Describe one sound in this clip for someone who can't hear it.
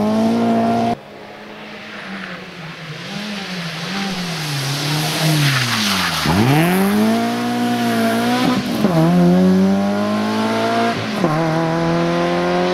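A rally car engine approaches, roars past close by and drops in pitch as it pulls away.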